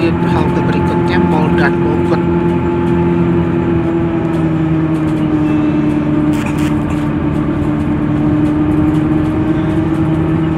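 Motorcycles buzz past outside.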